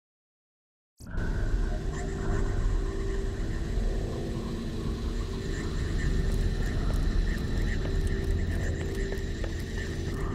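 A deep mechanical hum drones steadily.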